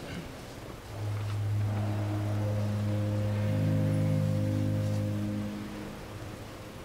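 A pipe organ plays soft, sustained chords.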